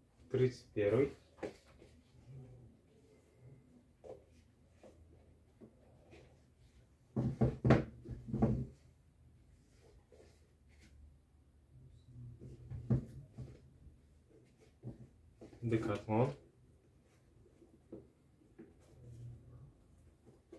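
Shoes knock and rustle as hands pick them up and handle them.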